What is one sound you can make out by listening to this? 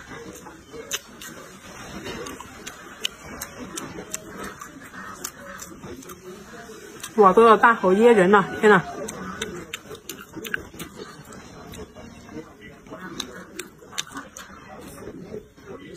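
A young woman chews food noisily, close up.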